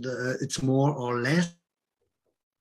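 A middle-aged man speaks with animation through an online call.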